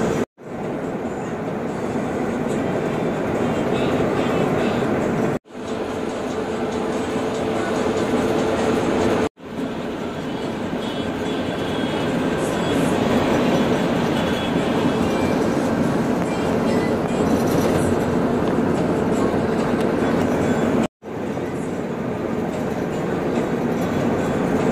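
Tyres roar on a concrete road.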